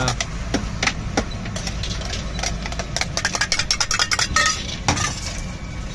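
Metal utensils clink and clatter against metal trays.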